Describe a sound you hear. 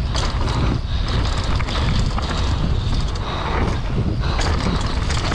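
Bike tyres rumble and rattle over a bumpy dirt trail.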